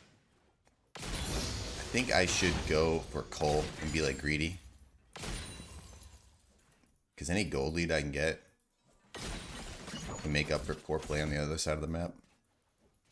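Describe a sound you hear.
A man speaks into a headset microphone.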